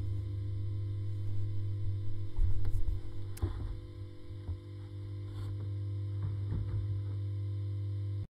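An amplifier hums steadily and low.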